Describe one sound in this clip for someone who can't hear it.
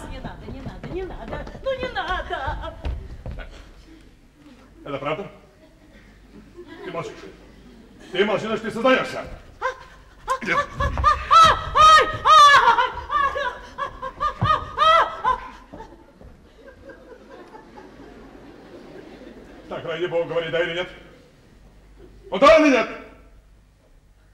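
A man speaks theatrically on a stage.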